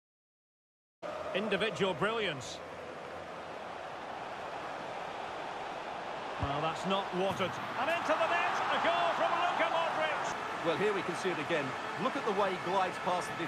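A stadium crowd roars in a football video game.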